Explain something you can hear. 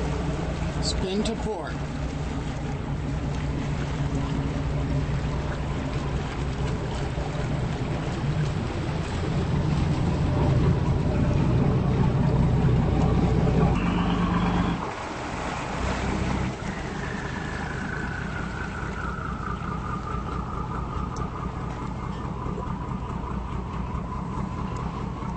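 Wind blows across the water.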